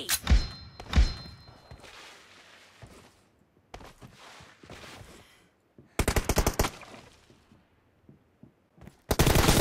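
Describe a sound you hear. Rapid gunfire rattles in sharp bursts.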